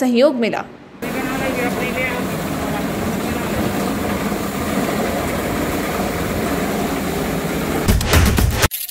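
A sprayer hisses as it shoots out a jet of liquid.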